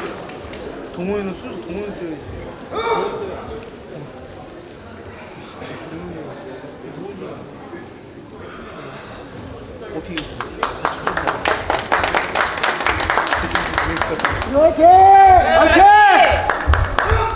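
Adult men shout sharp, drawn-out cries in a large echoing hall.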